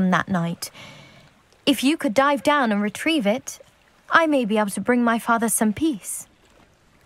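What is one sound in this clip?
A young woman speaks calmly and earnestly, close by.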